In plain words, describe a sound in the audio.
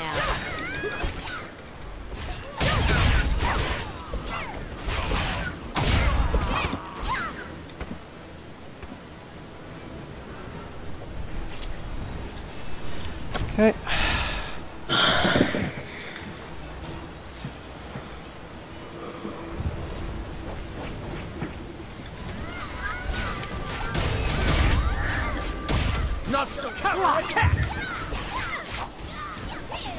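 Sword blows and magic effects clash in a game battle.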